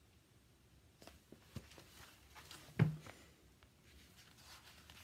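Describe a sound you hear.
A woman speaks calmly and close by.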